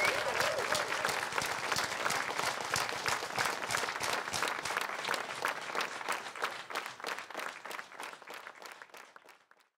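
An audience applauds loudly and the applause slowly fades away.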